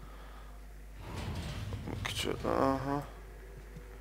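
A heavy cabinet scrapes across a hard floor.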